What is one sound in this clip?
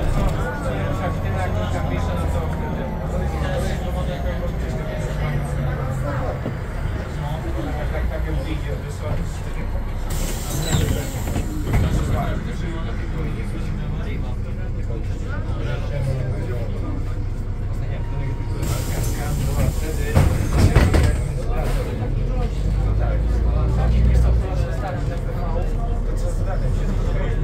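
A bus interior rattles and creaks as it rolls over the road.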